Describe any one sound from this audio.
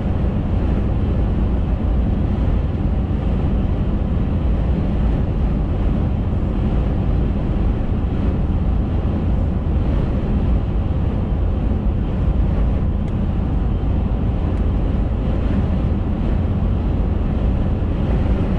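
Tyres roar steadily on a road.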